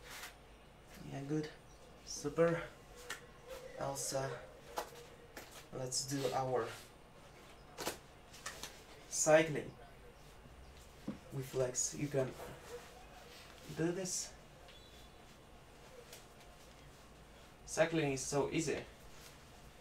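A young man speaks in short bursts close by, pausing between them.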